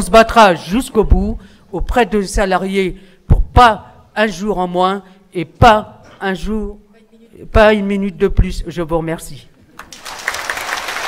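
A middle-aged woman speaks calmly into a microphone, heard through loudspeakers in a large hall.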